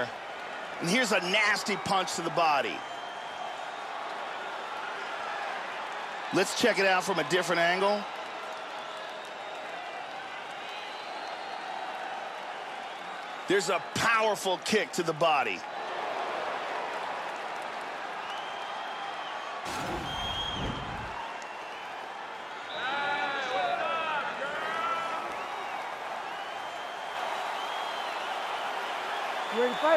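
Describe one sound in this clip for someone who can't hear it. A large crowd cheers steadily in a big echoing arena.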